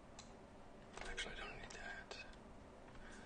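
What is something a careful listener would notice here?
A young man speaks calmly and briefly through a microphone.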